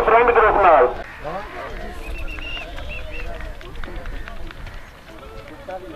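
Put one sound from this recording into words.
Men call out in the distance outdoors.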